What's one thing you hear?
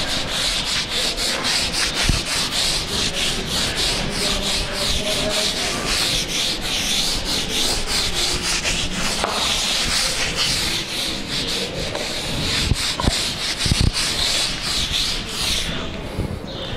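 Chalk scratches and taps on a board.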